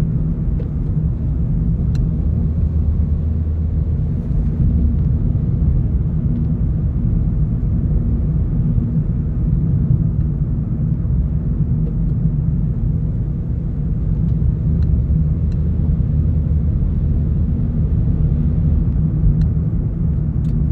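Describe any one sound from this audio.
A car drives along an asphalt road, its engine and tyre rumble heard from inside the car.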